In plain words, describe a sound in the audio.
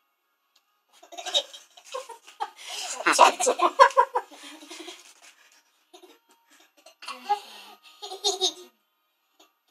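A young boy laughs loudly and happily close by.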